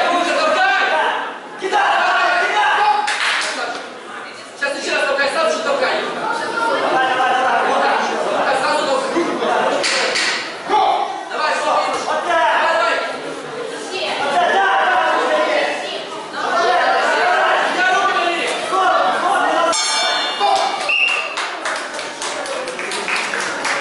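A crowd of children and adults chatters and shouts in a large echoing hall.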